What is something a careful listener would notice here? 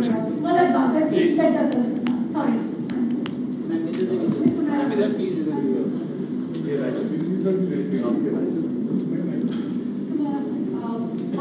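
A young man speaks calmly into microphones.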